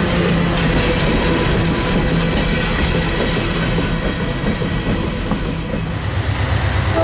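Freight cars rumble and clatter past close by.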